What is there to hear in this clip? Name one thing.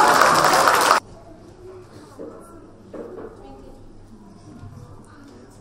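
A little girl speaks softly and hesitantly into a microphone.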